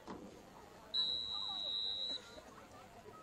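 A referee blows a long whistle blast.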